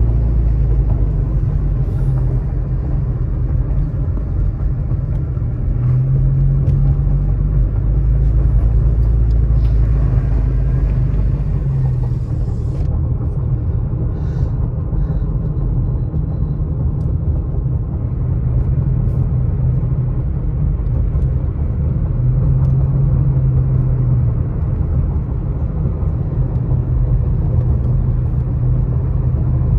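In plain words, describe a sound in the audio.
Tyres roll and rumble over the road.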